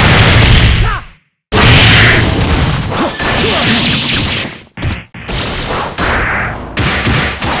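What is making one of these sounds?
Loud blasts and sword slashes clash in a video game fight.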